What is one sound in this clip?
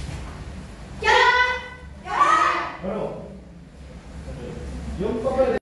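Children shout loudly in unison.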